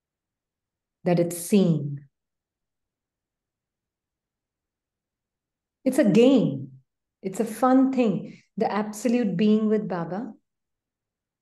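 A woman speaks calmly through an online call microphone, in short phrases with pauses.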